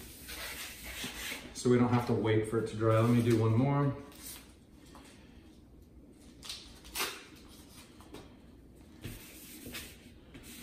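Paper rustles and scrapes on a board.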